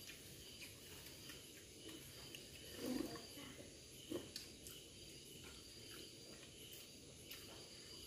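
Utensils clink softly against a plate.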